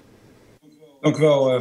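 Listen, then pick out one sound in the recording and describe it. An older man speaks over an online call.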